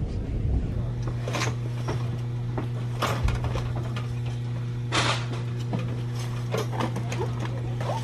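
Plastic packaging rustles and clatters.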